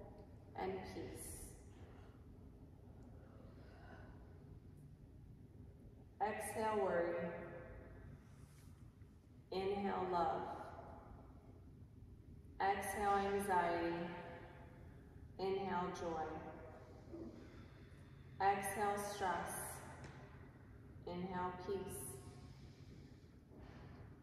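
A woman sings slowly and with feeling in a bare, echoing room.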